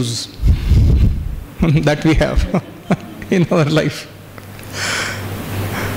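A man laughs warmly.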